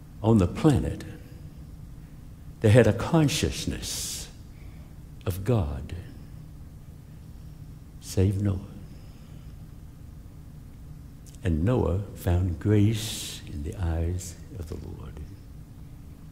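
A middle-aged man preaches with emphasis through a microphone, pausing between phrases, in a large room with some echo.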